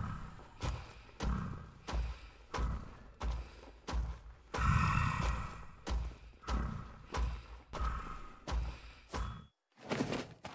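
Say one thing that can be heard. Upbeat dance music plays with a steady thumping beat.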